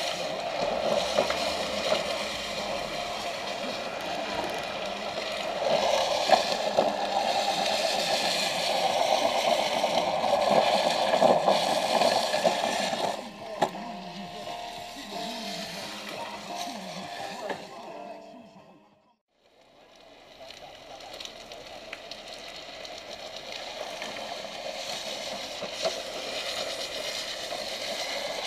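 Plastic trike wheels rumble and scrape along wet asphalt.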